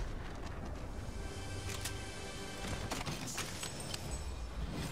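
A treasure chest creaks open with a bright shimmering chime.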